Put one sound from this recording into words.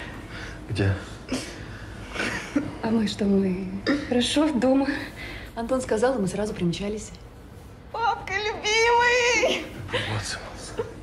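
Two young women laugh and talk playfully nearby.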